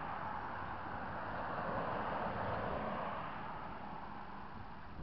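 An SUV drives past close by.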